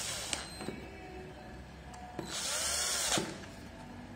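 A screwdriver squeaks as it turns a small screw.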